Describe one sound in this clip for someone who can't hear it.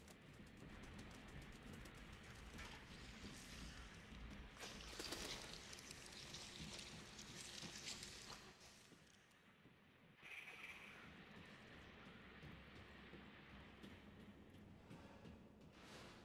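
Footsteps clatter on a metal grate floor.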